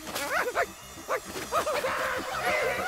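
A cartoon creature yelps and cries out in a high, strained voice.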